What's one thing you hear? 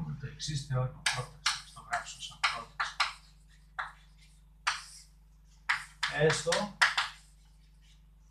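Chalk taps and scratches on a chalkboard as a man writes.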